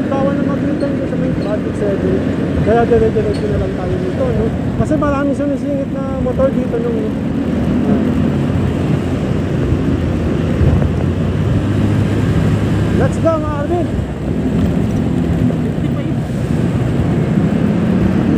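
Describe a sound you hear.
A motorbike engine hums steadily up close.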